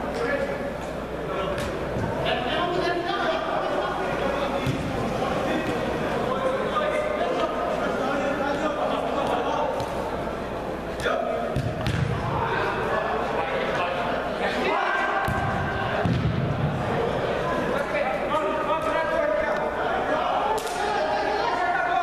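Young men shout to each other across an echoing indoor hall.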